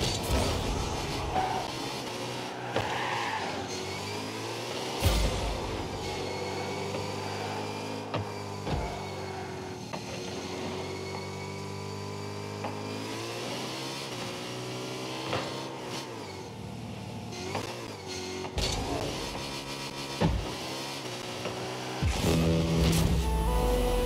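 A car engine hums steadily and rises and falls in pitch as the car drives.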